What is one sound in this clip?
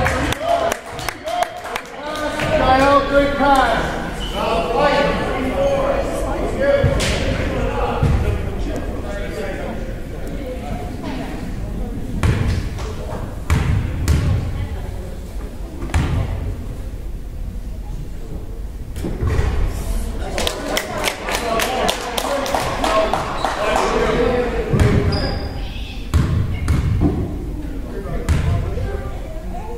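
Young players and spectators shout and call out across the echoing gym.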